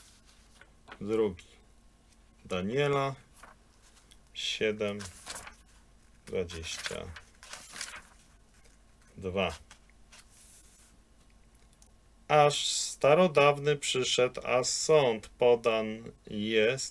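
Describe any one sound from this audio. A middle-aged man speaks calmly and haltingly, close to a microphone, as if reading out.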